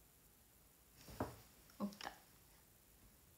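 A young woman speaks briefly and quietly close by.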